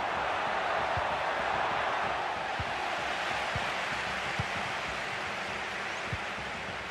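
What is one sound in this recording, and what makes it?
A stadium crowd roars without pause.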